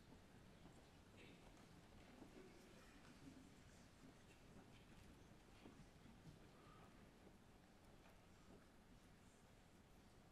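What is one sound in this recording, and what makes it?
A large group of children murmur and shuffle quietly in a large hall.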